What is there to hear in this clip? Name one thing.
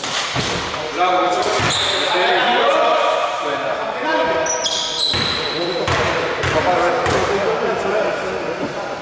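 Men shout and call out to each other across a large echoing hall.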